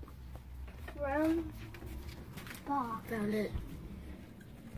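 A young girl speaks nearby.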